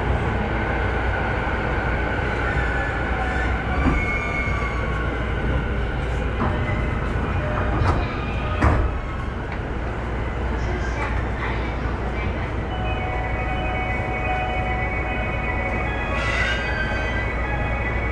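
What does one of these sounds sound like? A train rolls past with a steady rumble and clatter.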